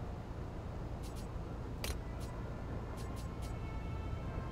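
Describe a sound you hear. Short high clicks from a game menu sound as options are selected.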